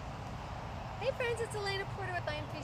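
A young woman speaks cheerfully, close by.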